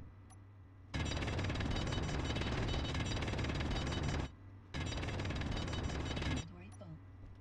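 A power tool grinds loudly against rock, stopping briefly once.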